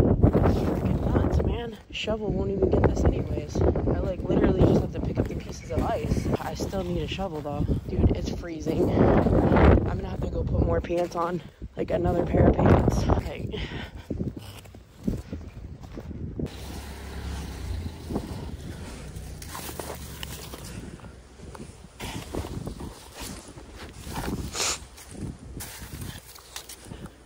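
Icy snow chunks crunch and scrape under a gloved hand.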